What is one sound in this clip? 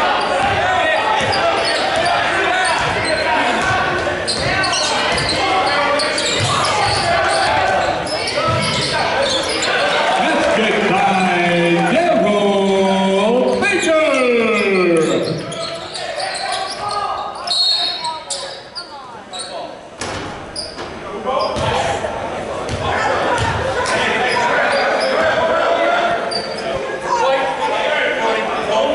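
A crowd chatters and calls out in an echoing gym.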